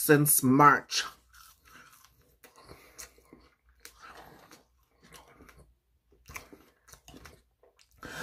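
A young man chews food with soft, wet smacking sounds.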